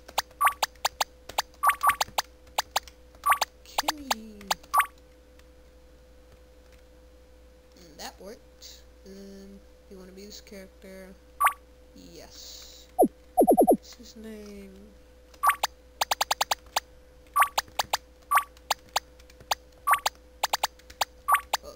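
Short electronic blips sound in quick bursts as a menu cursor moves.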